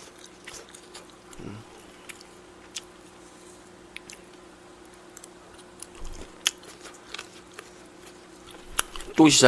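A young man chews and smacks his lips close to a microphone.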